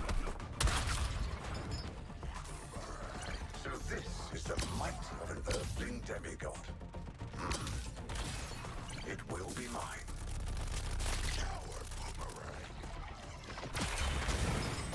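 Gunfire and explosions boom and crackle in a fast video game battle.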